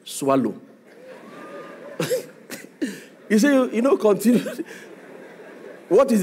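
An audience laughs.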